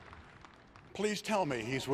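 An elderly man speaks into a microphone over loudspeakers.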